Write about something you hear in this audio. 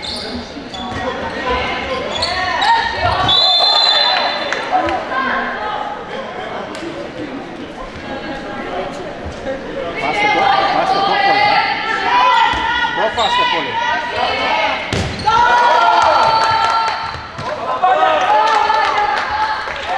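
Young women shout and call out to each other across a large echoing gym.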